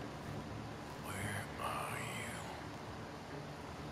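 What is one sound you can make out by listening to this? Corn leaves rustle as a man pushes through them.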